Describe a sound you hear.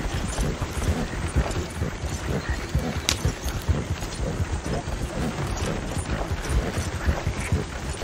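A horse-drawn wagon rolls and rattles over a dirt track.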